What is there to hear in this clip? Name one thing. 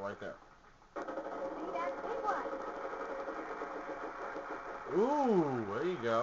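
A prize wheel in a video game ticks rapidly as it spins, heard through a television speaker.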